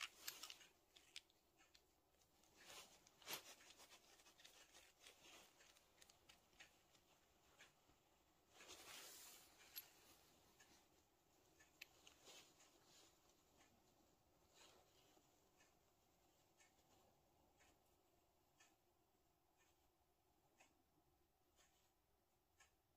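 Small metal parts click and tap as fingers handle them.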